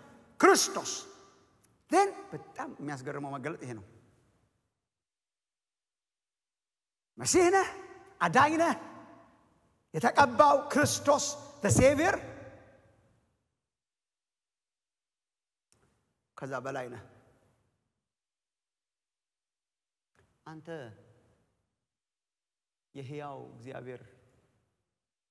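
A man speaks with animation into a microphone, in bursts separated by long pauses.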